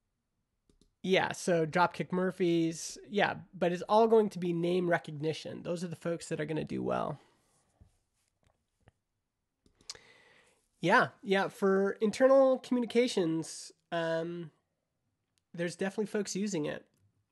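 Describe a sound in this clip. A man talks calmly and close to a microphone, with pauses.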